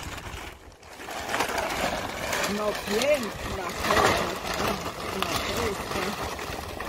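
Bark chips pour and rattle into a plastic crate.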